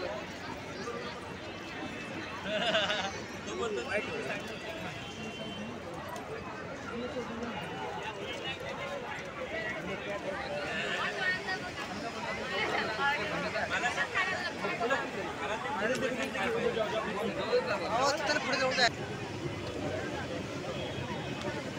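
A large crowd of men and women chatters and calls out all around, outdoors.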